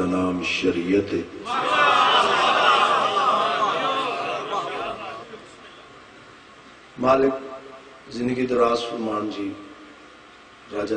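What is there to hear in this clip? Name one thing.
A man speaks loudly and with feeling into a microphone, heard through loudspeakers.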